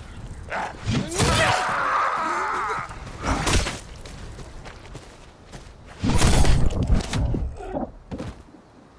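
A creature growls and snarls close by.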